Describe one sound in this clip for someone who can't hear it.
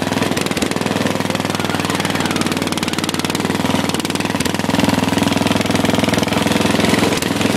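A lawn tractor engine rumbles loudly and steadily close by.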